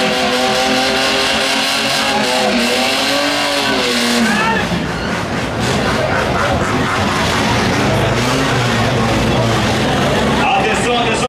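A race car engine roars loudly and revs up and down during a burnout.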